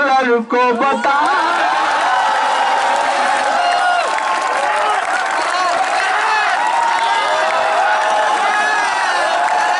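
A crowd chants loudly in unison.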